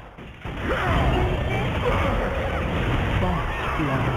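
A lightning spell crackles.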